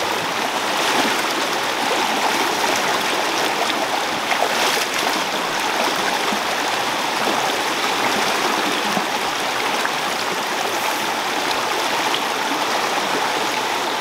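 Water splashes in a stream.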